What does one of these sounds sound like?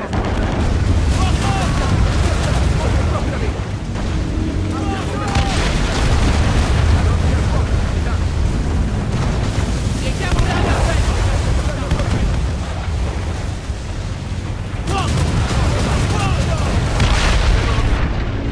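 Cannons fire in loud booming volleys.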